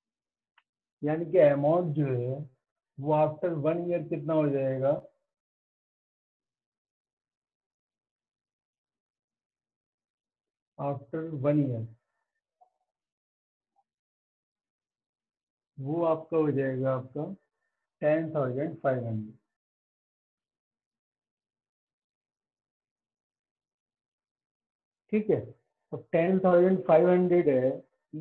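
A middle-aged man speaks calmly and explains, close by, in short bursts with pauses.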